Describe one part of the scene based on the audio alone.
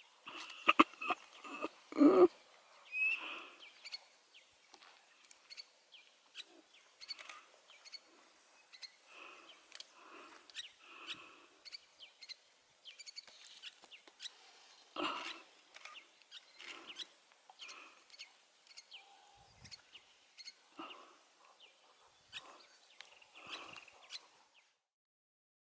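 Meerkats give short, high chirping calls close by.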